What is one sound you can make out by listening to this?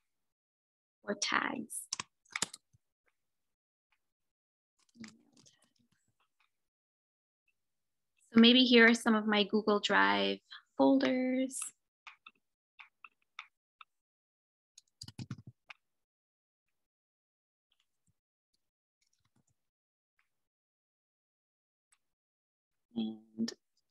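A young woman speaks calmly over an online call, in short bursts.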